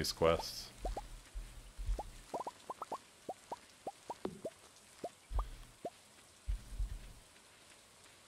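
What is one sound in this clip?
Short soft pops sound as crops are picked.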